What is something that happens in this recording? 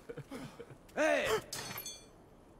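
A man shouts out briefly.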